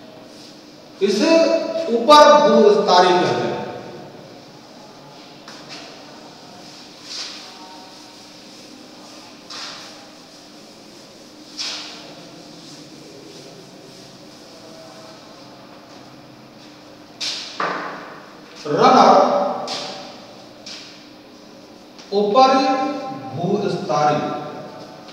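A man lectures in a raised voice.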